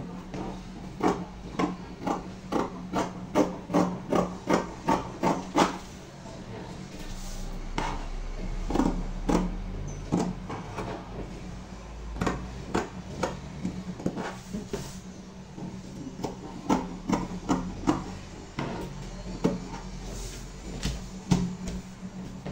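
Fabric scissors snip through fabric and paper.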